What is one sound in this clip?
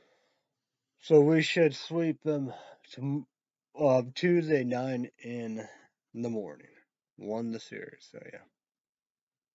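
A man speaks with animation close to the microphone.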